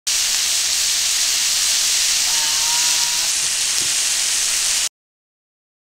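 Vegetables sizzle steadily as they fry in hot oil.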